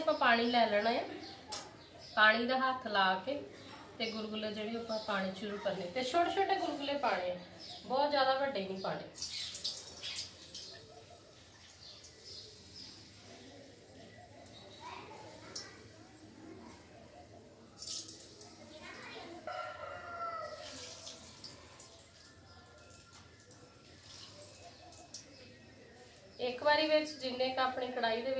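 A woman talks calmly and clearly close by.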